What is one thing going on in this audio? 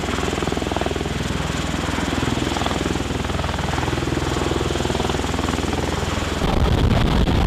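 A tiltrotor aircraft hovers nearby with a loud, steady rotor roar.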